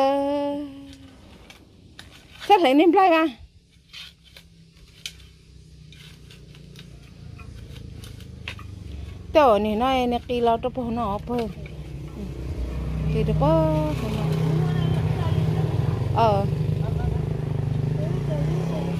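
A shovel scrapes and digs into dry soil.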